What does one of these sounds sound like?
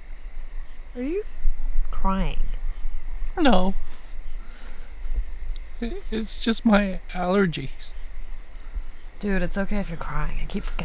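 A young woman moans and cries out softly, close by.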